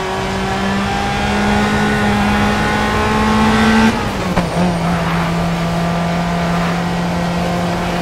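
A sports car engine roars loudly, climbing in pitch and dropping as it shifts gear.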